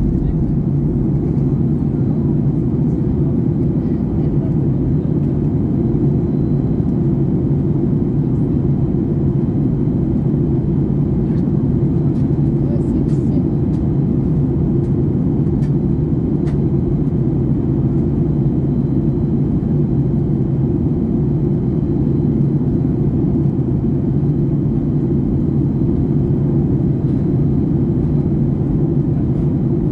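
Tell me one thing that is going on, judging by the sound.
A jet airliner's engines roar steadily in the cabin with a low, constant drone.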